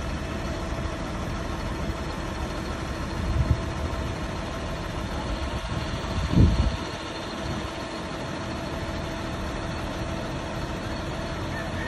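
A school bus engine rumbles steadily as the bus drives slowly past.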